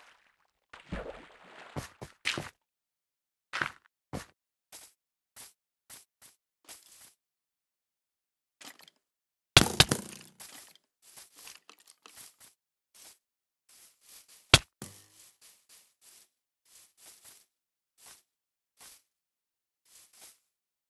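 Footsteps crunch on grass and dirt in a steady walking rhythm.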